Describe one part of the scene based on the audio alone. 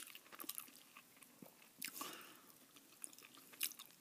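A crisp bun crackles as fingers pick at a burger.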